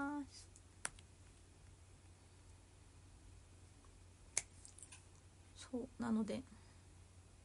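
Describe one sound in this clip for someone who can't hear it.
A young woman speaks softly and close up, in short bursts.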